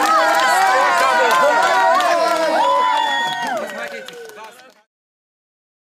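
A crowd of men and women sings together close by, then fades out.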